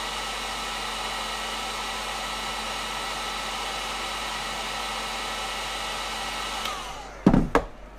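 A heat gun blows with a steady whirring roar, then winds down.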